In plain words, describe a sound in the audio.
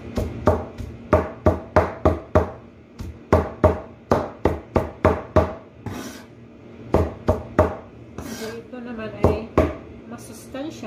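A large knife chops leafy greens on a board with rapid, thudding knocks.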